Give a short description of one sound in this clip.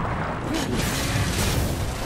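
Metal blades clash and scrape with sharp ringing hits.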